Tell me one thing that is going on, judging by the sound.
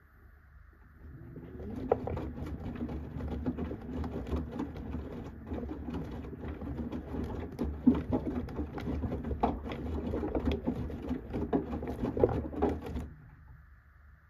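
A washing machine drum tumbles wet laundry with a churning, sloshing sound.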